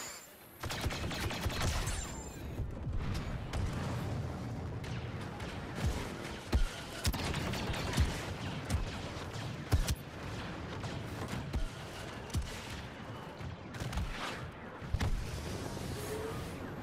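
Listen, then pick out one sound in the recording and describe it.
Blaster shots fire in sharp bursts.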